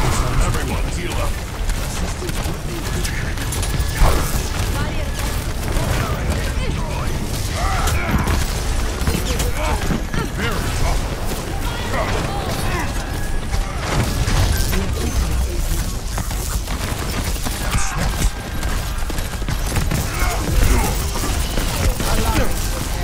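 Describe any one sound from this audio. Video game weapons fire in rapid bursts.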